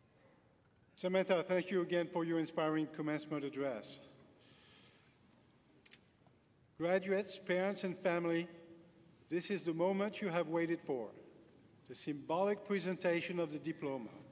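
An elderly man speaks calmly through a microphone and loudspeakers in a large hall.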